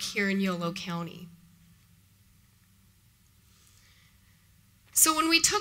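A woman speaks through a microphone, pausing between phrases.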